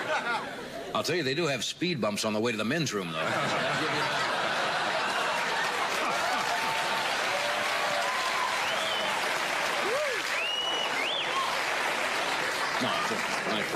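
A middle-aged man speaks with humour through a microphone.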